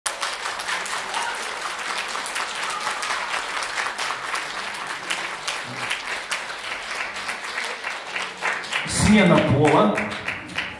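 An acoustic guitar strums a lively rhythm.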